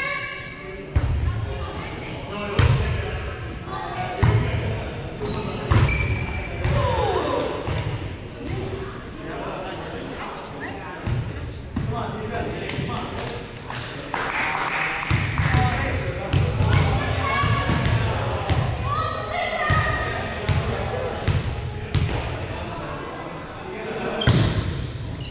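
A volleyball is struck by hands, thudding in a large echoing gym.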